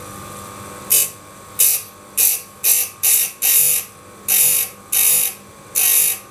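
A grinder grinds metal in short, sharp bursts.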